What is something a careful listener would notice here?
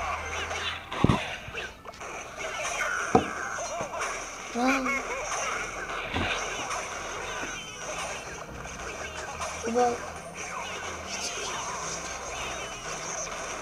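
Sharp thuds and clashes of a cartoon battle game ring out now and then.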